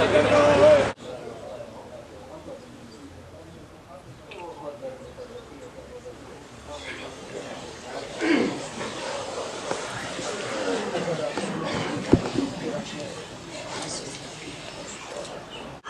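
Men murmur quietly in a small room.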